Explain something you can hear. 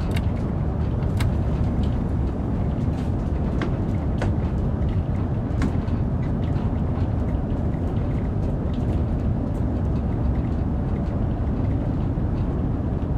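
A train rumbles steadily along the track at speed.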